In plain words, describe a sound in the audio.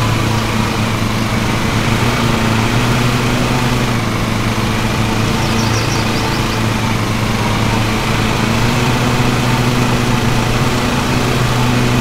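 Tall grass swishes under mower blades.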